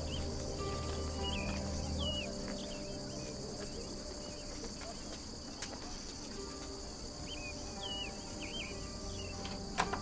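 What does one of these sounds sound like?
Footsteps climb outdoor stairs.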